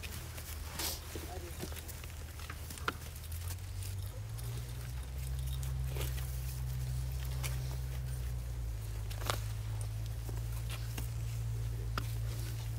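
A metal censer clinks on its chains as it swings.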